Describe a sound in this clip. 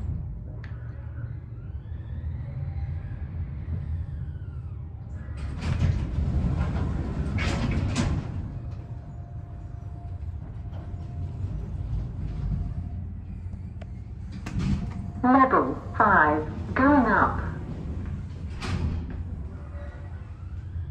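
An elevator car hums and rumbles steadily as it moves.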